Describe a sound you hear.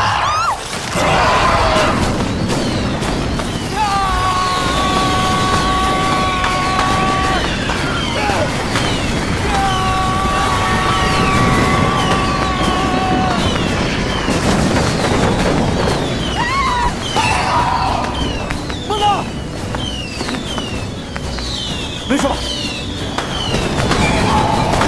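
Fireworks crackle and pop.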